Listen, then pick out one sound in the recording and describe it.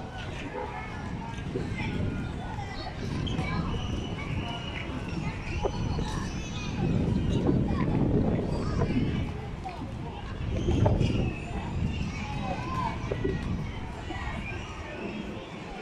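Children shout and chatter across an open field outdoors.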